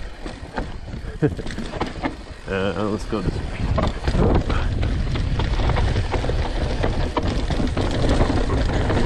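Bike tyres rumble and rattle over rocky ground.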